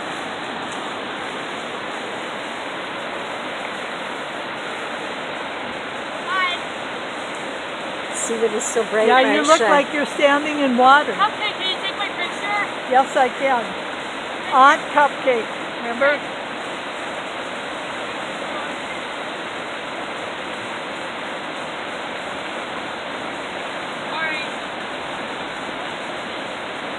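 A river rushes steadily over rocks close by.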